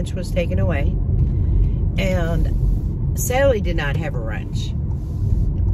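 An older woman talks calmly and close by.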